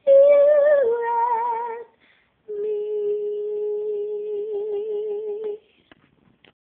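A young woman sings close by, holding long notes.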